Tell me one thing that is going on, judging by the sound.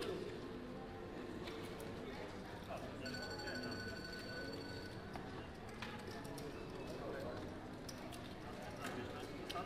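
Men and women murmur and chat nearby.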